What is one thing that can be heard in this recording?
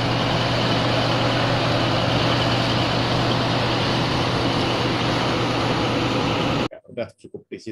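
Heavy drilling machinery rumbles and roars loudly.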